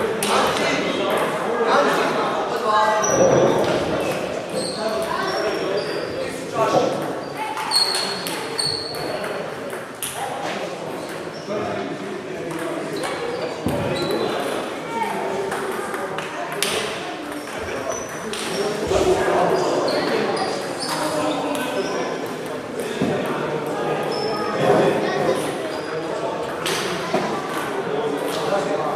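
Ping-pong balls click against paddles and tables in a large echoing hall.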